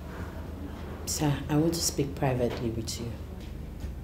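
A woman speaks firmly nearby.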